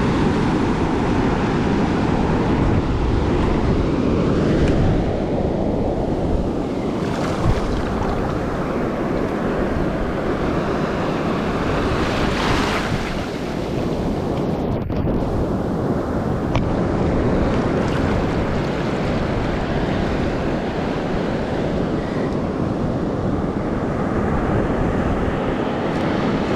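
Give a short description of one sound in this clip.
Waves wash up over sand and foam fizzes close by.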